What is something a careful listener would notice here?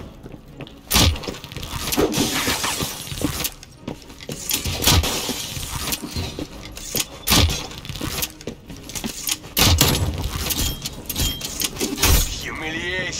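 A crossbow fires with sharp snapping thwacks, again and again.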